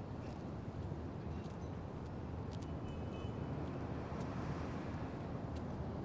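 Footsteps walk slowly on pavement.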